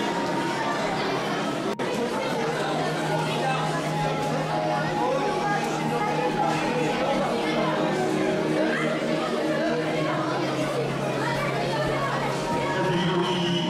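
A crowd of children and adults chatters in a large echoing hall.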